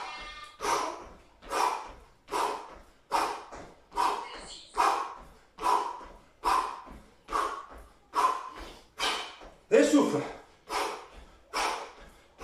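A young man counts out loud in a steady rhythm, close by.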